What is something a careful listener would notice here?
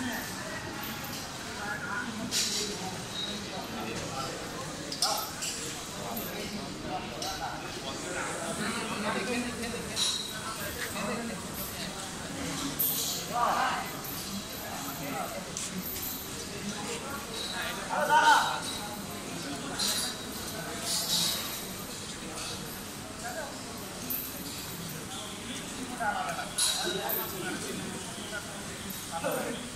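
Men talk in the background of a large echoing hall.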